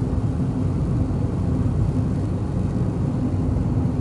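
A large truck rumbles past close by.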